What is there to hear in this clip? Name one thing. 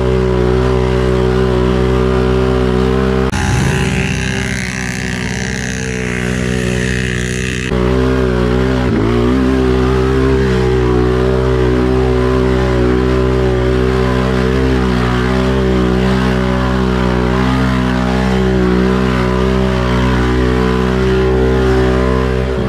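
A quad bike engine drones loudly up close.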